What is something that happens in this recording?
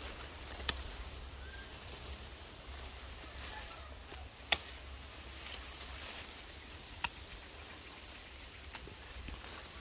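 Pruning shears snip sharply through twigs.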